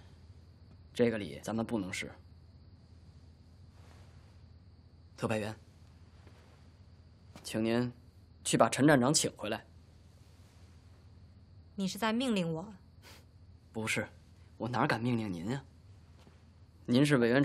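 A young man speaks calmly and quietly, close by.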